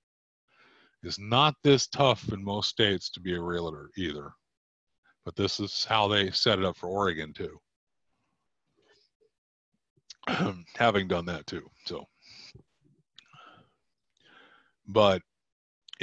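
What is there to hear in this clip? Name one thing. A middle-aged man speaks calmly through a microphone on an online call, pausing between phrases.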